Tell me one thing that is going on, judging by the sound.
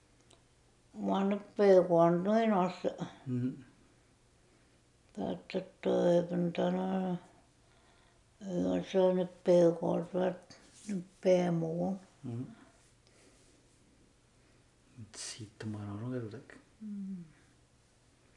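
An elderly woman speaks calmly nearby, in bursts with pauses.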